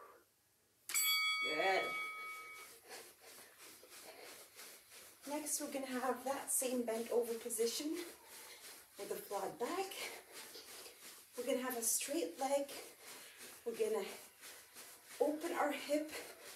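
A young woman speaks clearly and steadily, close by.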